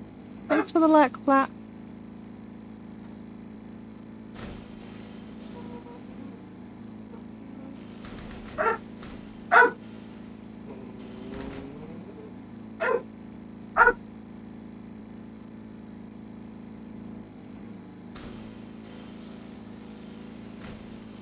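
A small lawn mower engine hums steadily.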